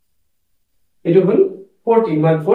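A middle-aged man speaks calmly nearby, explaining.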